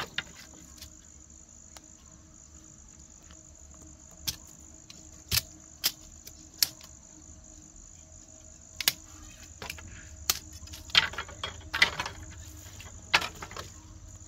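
A machete strikes bamboo with sharp knocks.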